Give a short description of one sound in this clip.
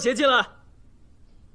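A young man exclaims loudly, close by.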